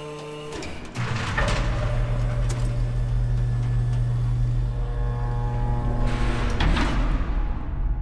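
A heavy hatch rumbles open with a deep mechanical hum.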